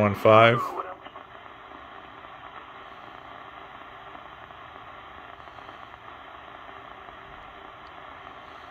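A small radio receiver hisses with steady static through its speaker.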